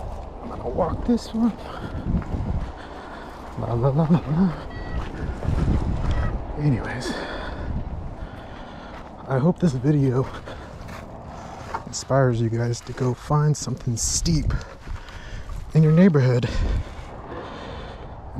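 Bicycle tyres crunch over loose gravel.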